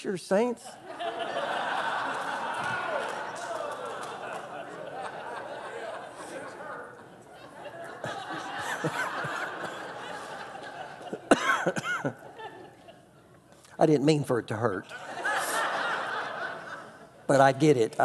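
An audience laughs together.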